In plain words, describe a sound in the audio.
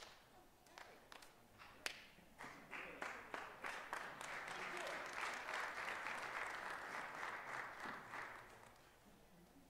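A crowd applauds in an echoing hall, then the clapping dies away.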